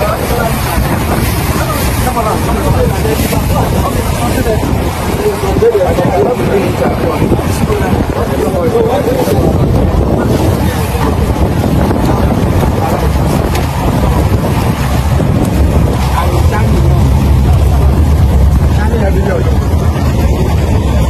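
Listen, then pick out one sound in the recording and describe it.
A boat engine rumbles low over the water.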